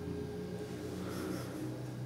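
Paper rustles as hands lift a canvas.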